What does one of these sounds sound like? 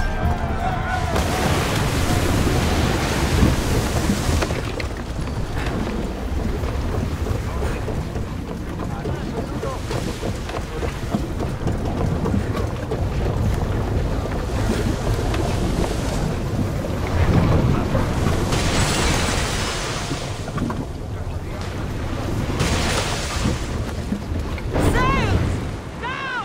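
A ship's wooden deck creaks as it rolls.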